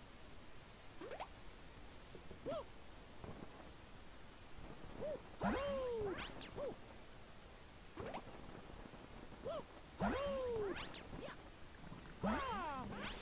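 Cartoonish springy whooshes sound as a small figure jumps and spins.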